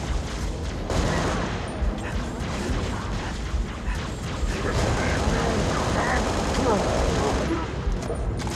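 Rapid gunfire bursts out.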